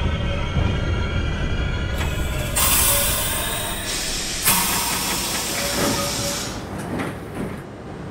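A train rumbles along the tracks and slows to a stop.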